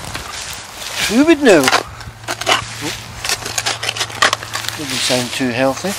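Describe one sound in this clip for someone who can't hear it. A shovel scrapes and digs into soil.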